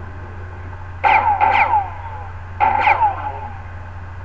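Sharp electronic zapping bursts sound twice in quick succession.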